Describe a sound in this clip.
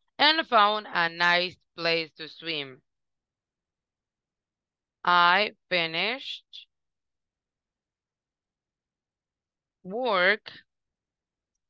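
A woman speaks slowly and clearly through an online call, as if teaching, in short phrases with pauses.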